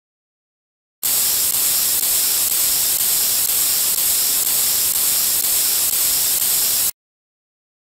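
Whipped cream sprays out with a steady hiss.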